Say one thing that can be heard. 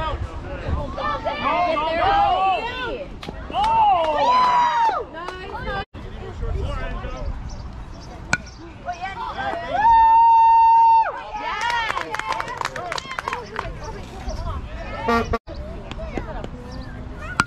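Young players shout and cheer across an open field.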